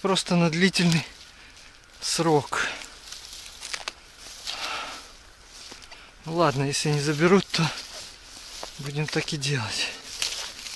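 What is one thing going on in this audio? Footsteps crunch on dry grass and pine needles.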